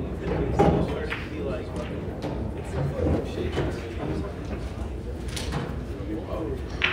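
A small crowd of men and women murmurs and chats nearby in a room with some echo.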